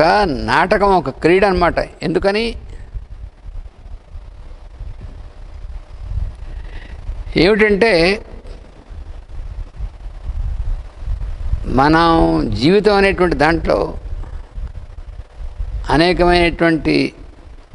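An elderly man speaks calmly into a clip-on microphone, pausing between phrases.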